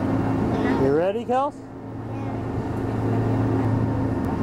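A young girl laughs close by.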